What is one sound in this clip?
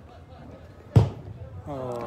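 A football is kicked hard with a single thud.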